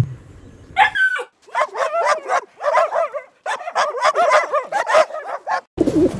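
A dog barks and whines rapidly.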